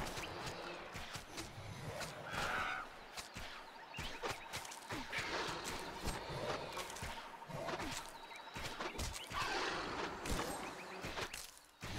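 A spell bursts with a magical whoosh.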